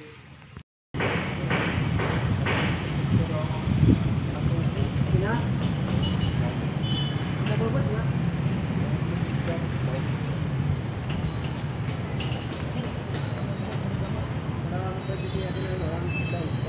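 Bamboo scaffolding creaks and knocks as workers climb on it.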